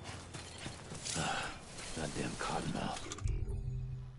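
A man groans and mutters hoarsely to himself.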